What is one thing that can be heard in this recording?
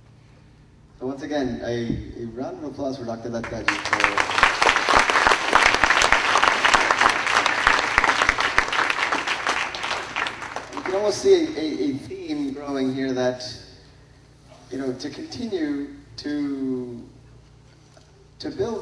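A man speaks calmly into a microphone, addressing an audience.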